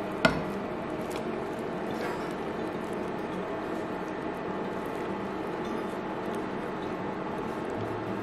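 Shredded cabbage drops into a pan and sizzles loudly.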